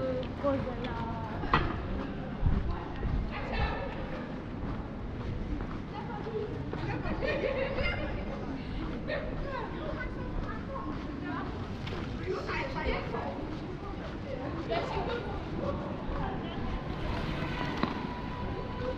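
Footsteps of people walking tap on paving nearby.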